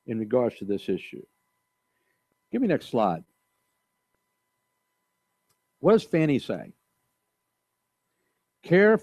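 An older man speaks calmly through a microphone, in short phrases with pauses.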